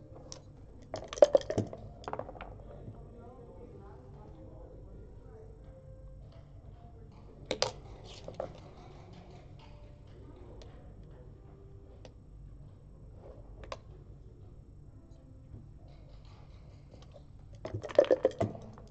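Dice rattle and clatter as they are rolled onto a board.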